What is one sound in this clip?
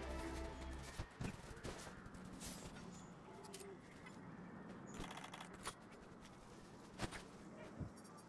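Armoured footsteps thud and clink across rough ground.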